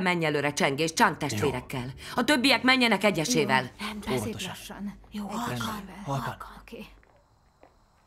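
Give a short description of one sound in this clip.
A woman speaks firmly to a group.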